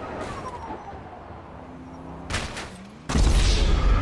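A body slams hard onto a roof.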